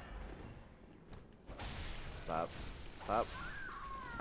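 A blade swings and strikes with a heavy thud.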